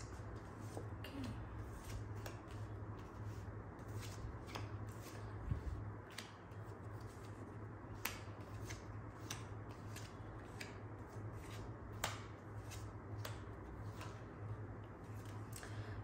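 Cards slap and shuffle softly on a table.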